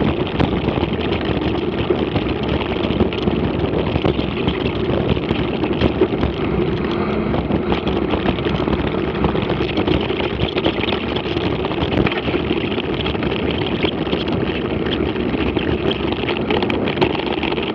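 Bicycle tyres crunch and rattle over a rough dirt track.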